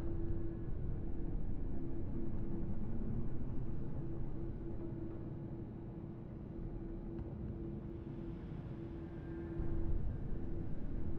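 A deep mechanical hum drones steadily, with a low rumble.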